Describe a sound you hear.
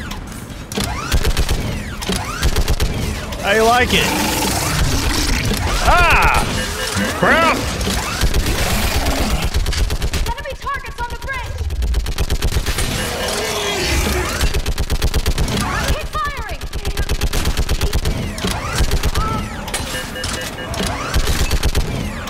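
A heavy turret gun fires in rapid bursts.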